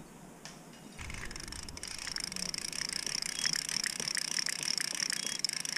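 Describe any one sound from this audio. A fishing reel whirs and clicks as its line is wound in.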